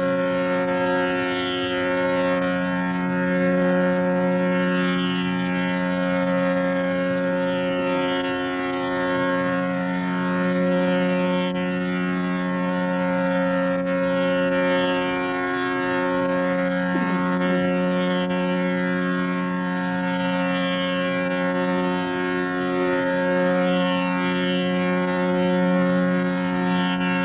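A tanpura drones steadily throughout.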